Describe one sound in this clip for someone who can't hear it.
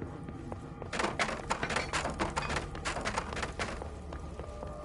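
Objects smash and clatter in a burst of crashing.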